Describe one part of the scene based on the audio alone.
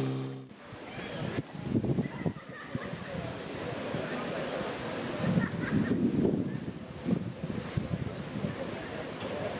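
Men talk in a crowd outdoors.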